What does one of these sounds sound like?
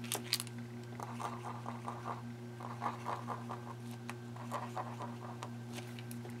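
A marker squeaks and scratches on paper in short bursts.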